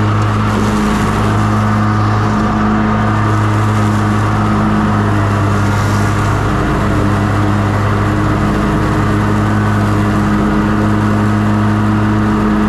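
Mower blades whir through dry leaves.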